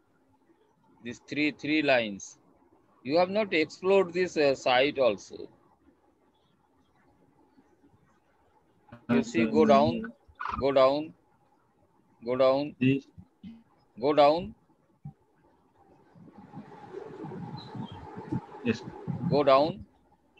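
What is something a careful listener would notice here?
A man speaks calmly over an online call, in pauses.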